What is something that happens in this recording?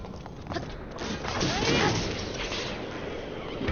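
A blast bursts with a loud whoosh.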